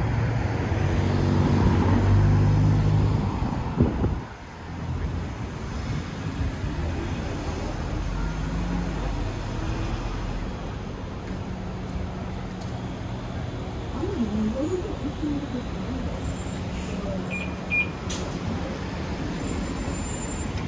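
Traffic rumbles steadily outdoors on a street.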